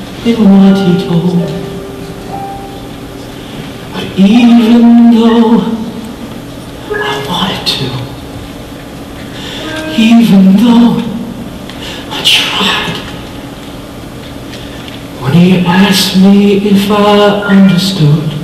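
A man sings on a stage in long held phrases, heard from a distance in a reverberant hall.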